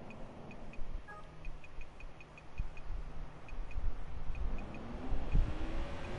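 Soft electronic ticks sound as a phone menu is scrolled.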